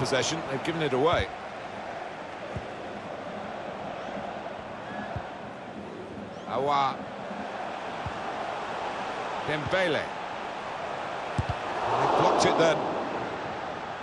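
A stadium crowd murmurs and roars steadily.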